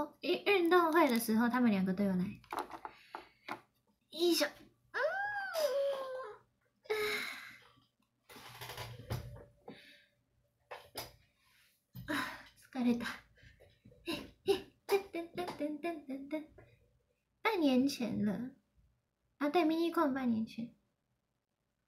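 A young woman speaks playfully and with animation close by.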